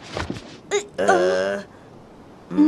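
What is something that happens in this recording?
A cartoon character's voice grumbles.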